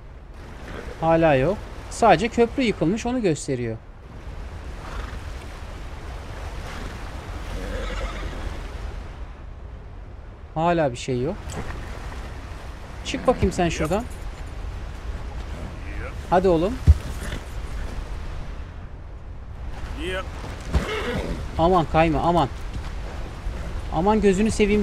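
A man talks calmly and close to a microphone, in bursts.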